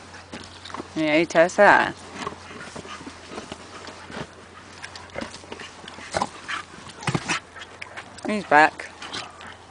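A puppy yelps and whines in short high cries.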